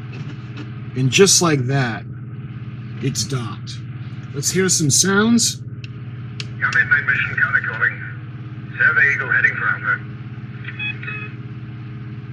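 A toy's small speaker plays crackly electronic sound effects in short bursts.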